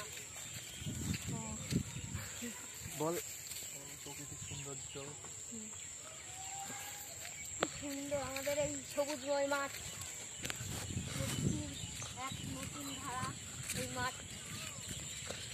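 A young boy talks and calls out excitedly close by.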